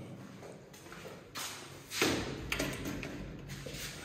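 A sliding window rattles open.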